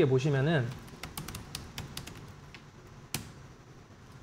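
Keys on a keyboard click lightly.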